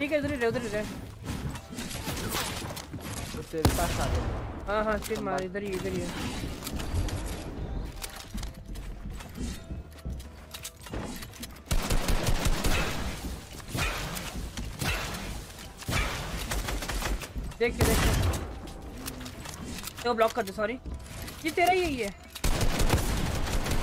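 Game sounds of building and gunfire clatter rapidly.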